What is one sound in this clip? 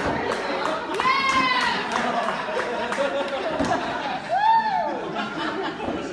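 A young woman laughs and shrieks loudly nearby.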